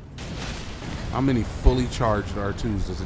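Fire bursts with a loud crackling blast.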